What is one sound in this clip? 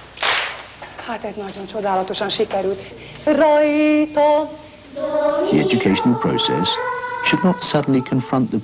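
Children sing together.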